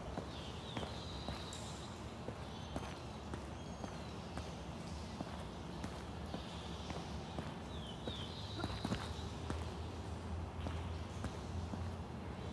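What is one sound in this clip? Footsteps tread on a hard, gritty floor.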